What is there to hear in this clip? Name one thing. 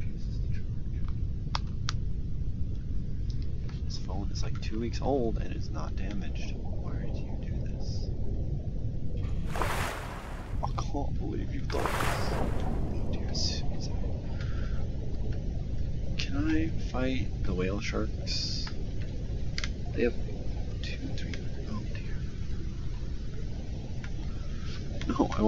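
Water rumbles low and steady.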